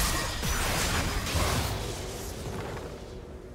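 Magic spells crackle and clash in a fast fight.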